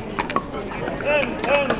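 Shoes squeak on a hard court.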